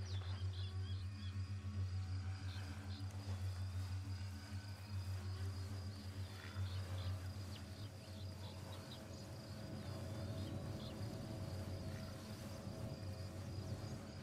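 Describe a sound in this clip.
Footsteps crunch on sand and grass.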